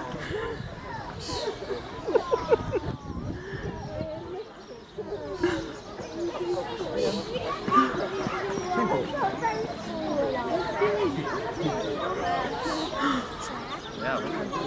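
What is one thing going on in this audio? Meerkats chirp and squeak while play-fighting.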